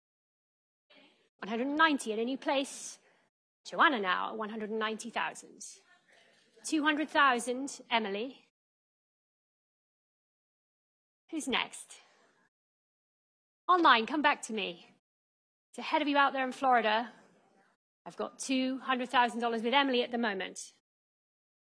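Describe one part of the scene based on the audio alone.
A woman auctioneer speaks with animation through a microphone.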